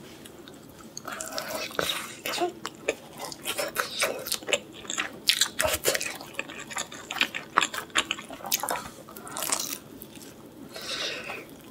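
A young woman bites into crispy food and chews noisily close to a microphone.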